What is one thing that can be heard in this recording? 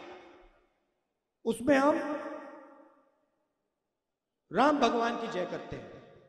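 A middle-aged man speaks forcefully into a microphone, his voice echoing through loudspeakers.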